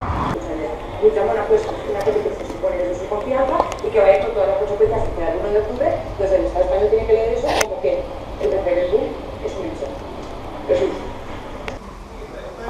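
An elderly man speaks nearby.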